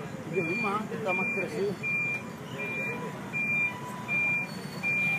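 A truck's warning alarm beeps steadily and repeatedly.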